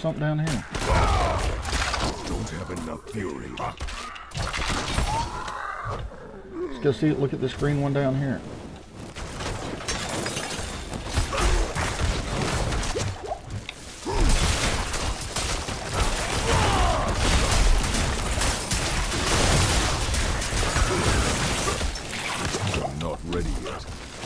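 Weapons clash and strike in a fast fight.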